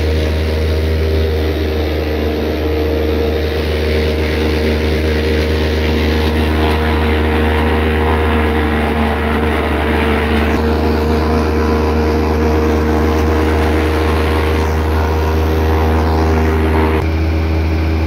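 A wood chipper whirs and roars as it shreds cane stalks.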